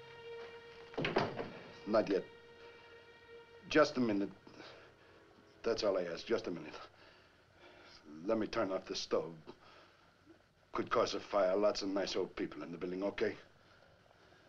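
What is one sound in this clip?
A middle-aged man speaks in short bursts with pauses in between, close by.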